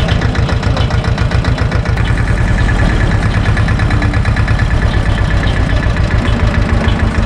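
A tractor engine chugs loudly and steadily up close.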